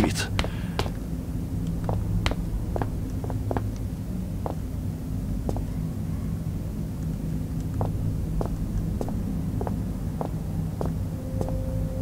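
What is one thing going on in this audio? Footsteps tap on a hard floor in an echoing tunnel.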